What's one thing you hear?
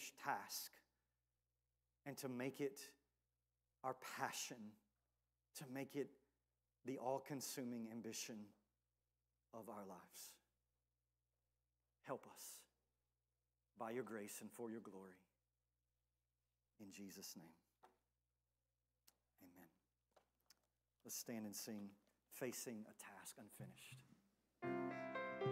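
A man speaks calmly through a microphone in an echoing hall, with pauses between phrases.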